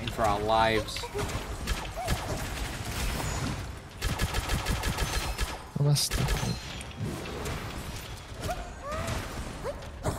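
Magic blasts whoosh and burst.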